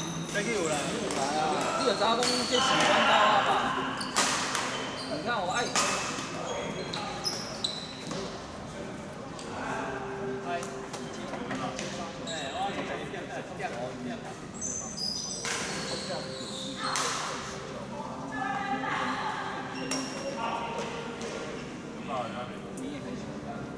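Badminton rackets smack shuttlecocks in a large echoing hall.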